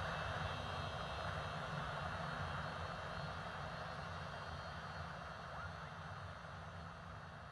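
A small aircraft engine drones steadily, heard from inside the cabin.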